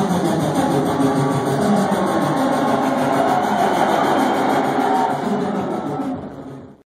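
Loud dance music plays over big speakers in a large echoing hall.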